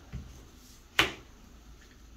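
A playing card snaps down onto a table.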